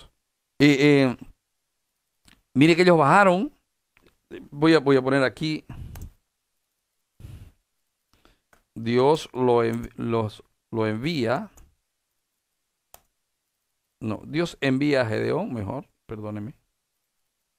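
A man speaks calmly and steadily through a headset microphone, in short phrases with pauses.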